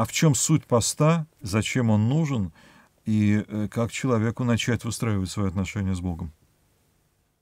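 A middle-aged man speaks calmly and expressively into a close microphone.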